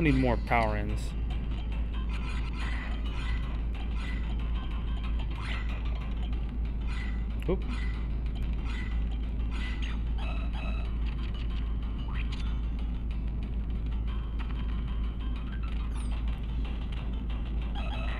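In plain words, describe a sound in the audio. Cheerful game music plays steadily.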